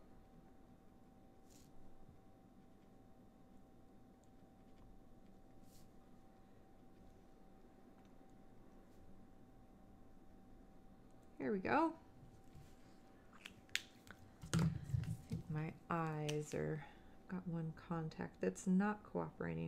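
A felt-tip marker squeaks softly across paper.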